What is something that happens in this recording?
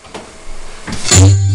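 A drum is struck with a loud crash.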